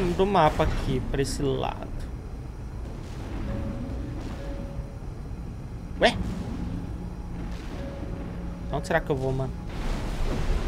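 Mech jet thrusters roar steadily.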